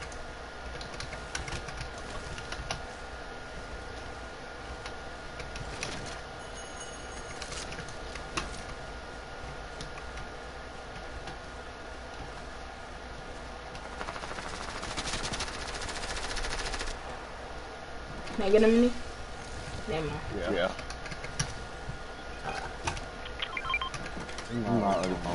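Footsteps patter quickly as a game character runs.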